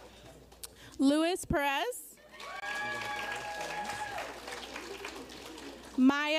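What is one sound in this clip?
Audience members whoop and cheer loudly.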